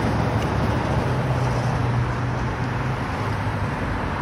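A vehicle drives past close by.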